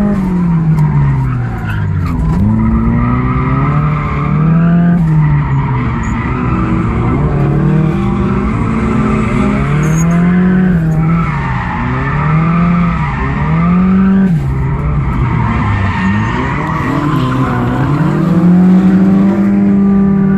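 Tyres squeal on asphalt as a car drifts through turns.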